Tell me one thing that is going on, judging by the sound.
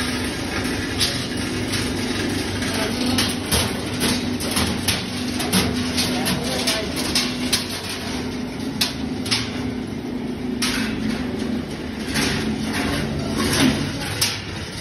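Metal clinks and knocks sharply now and then.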